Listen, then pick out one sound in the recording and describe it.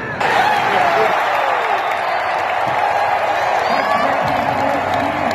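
A large crowd cheers loudly in an echoing indoor arena.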